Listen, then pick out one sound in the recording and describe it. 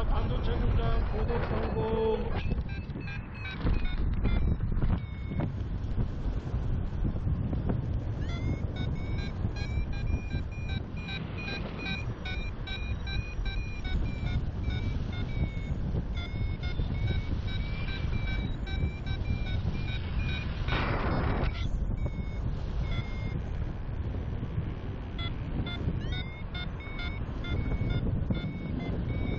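Strong wind rushes and buffets steadily past, outdoors high in the air.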